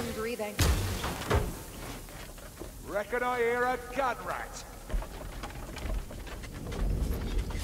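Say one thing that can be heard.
Heavy blows strike and thud in a fight.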